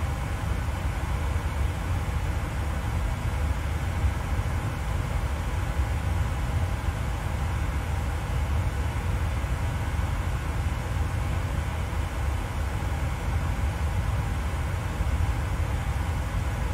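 A jet's engines hum with a steady, low rumble.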